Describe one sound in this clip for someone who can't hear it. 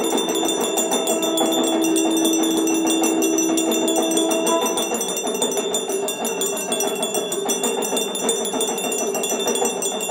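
A small hand bell rings rapidly and steadily.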